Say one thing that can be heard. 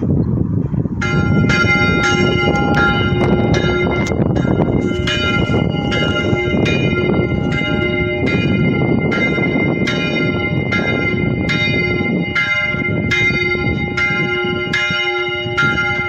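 Church bells ring in a quick, repeated clanging peal.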